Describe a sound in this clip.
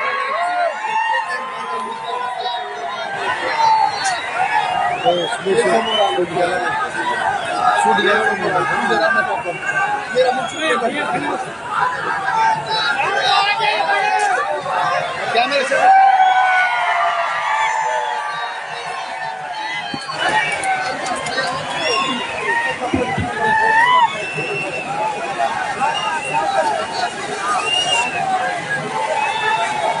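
A loud crowd of men talks and shouts at once.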